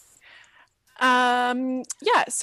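A young woman speaks over an online call.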